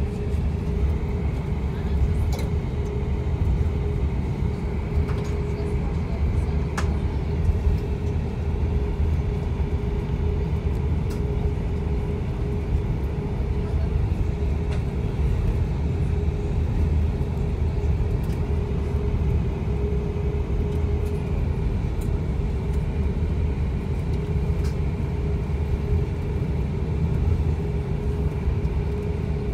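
Jet engines hum steadily from inside an airliner cabin.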